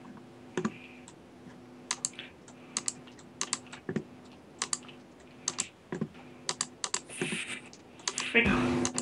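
Stone blocks are set down with short, dull knocks.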